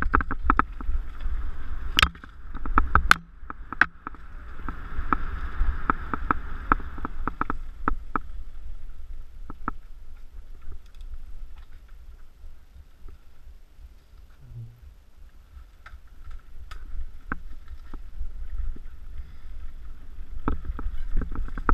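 A bicycle rattles and clatters over bumps in the trail.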